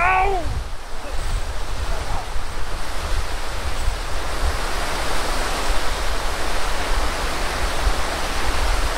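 Wind blows and rumbles outdoors.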